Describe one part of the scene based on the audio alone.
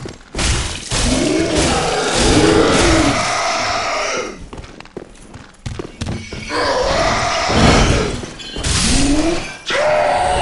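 Metal weapons clash and strike during a fight.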